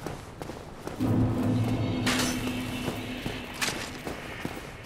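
A magical shimmering tone swells up and rings out.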